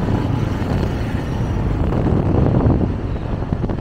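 A motorcycle engine putters past close by.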